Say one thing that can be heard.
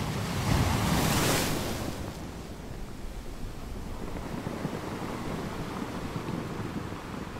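Water washes and fizzes around rocks.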